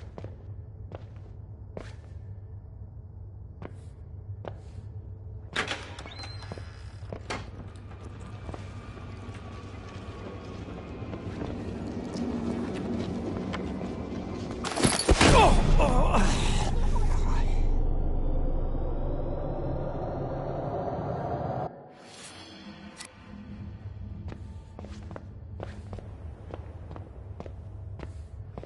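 Footsteps thud slowly on hard stairs.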